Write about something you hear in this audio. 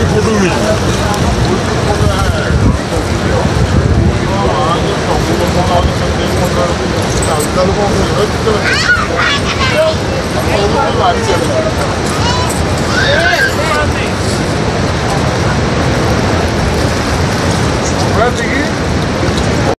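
Floodwater rushes and roars steadily.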